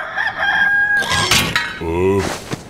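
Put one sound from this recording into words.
A metal can lid pops off and clatters onto pavement.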